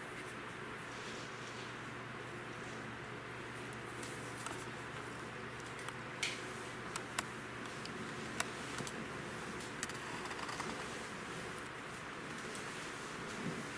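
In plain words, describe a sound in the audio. A paintbrush dabs and scrapes softly on paper.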